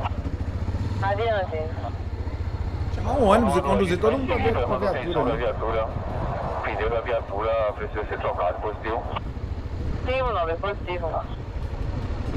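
A man talks with animation into a microphone, close up.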